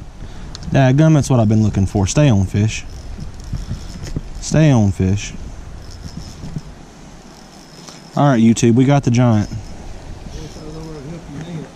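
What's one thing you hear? A fishing reel whirs and clicks as it is wound in.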